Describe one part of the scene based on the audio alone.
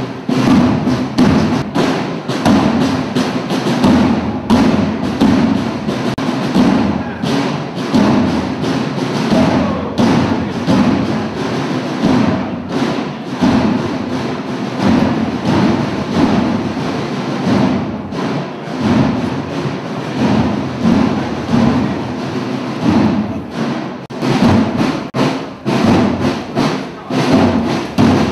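Many boots tramp on a cobbled street in a steady marching rhythm.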